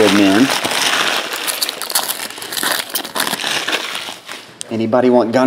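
A foil wrapper crinkles and tears as it is ripped open.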